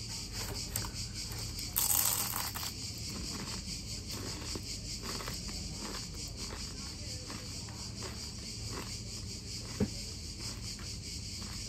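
A young woman chews and munches on crunchy pastry.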